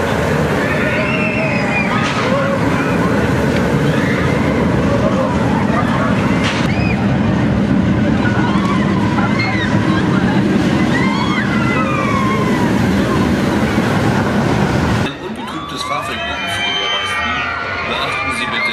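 Riders scream on a roller coaster.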